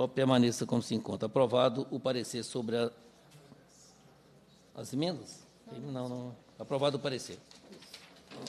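A man speaks into a microphone in a calm, formal tone.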